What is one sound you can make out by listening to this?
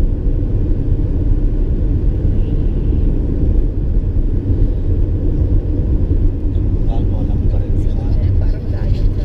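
Tyres roll over smooth asphalt with a low rumble.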